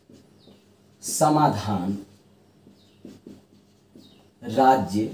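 A middle-aged man speaks calmly and clearly, close by, as if explaining.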